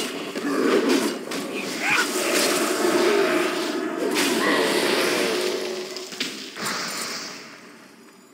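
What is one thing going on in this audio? Spells crackle and burst with loud blasts during a fight.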